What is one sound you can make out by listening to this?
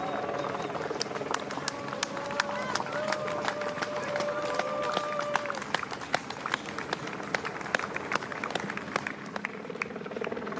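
Spectators clap and cheer along the roadside.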